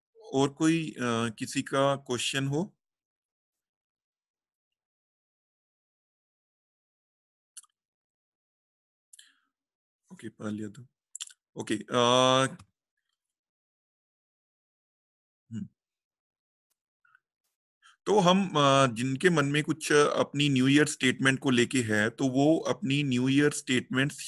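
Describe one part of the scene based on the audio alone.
A man talks calmly over an online call, in short bursts with pauses.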